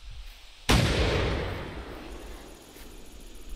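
A shotgun fires a single loud blast that echoes and fades.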